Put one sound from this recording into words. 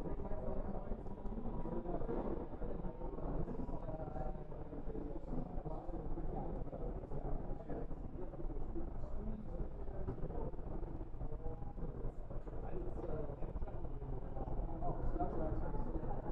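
A crowd of adults chatters nearby.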